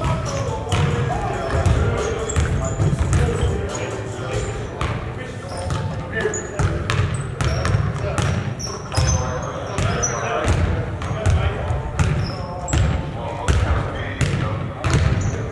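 Young men shout and call out to one another across the court.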